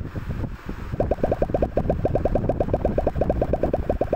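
Rapid electronic blips sound as game balls bounce off blocks.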